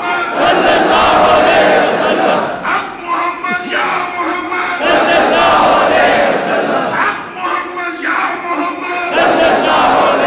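A man sings out through a loudspeaker.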